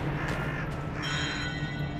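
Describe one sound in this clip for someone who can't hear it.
A bright magical chime twinkles.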